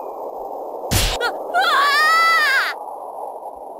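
A burst of magical twinkling and warbling sounds.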